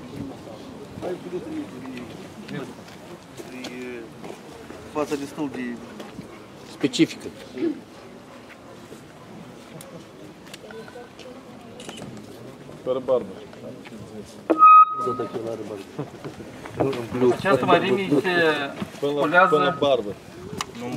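Several men talk outdoors nearby.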